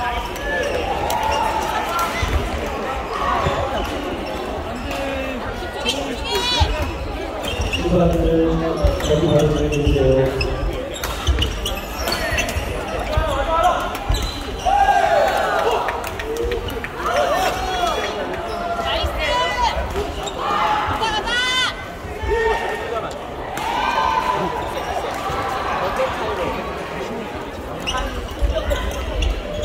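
Many people talk and call out across a large echoing hall.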